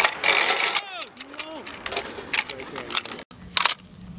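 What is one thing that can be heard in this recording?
Metal parts of a gun clack and click as ammunition is loaded.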